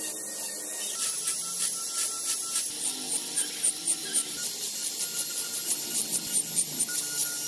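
A rotary bit scratches against wood in short, repeated bursts.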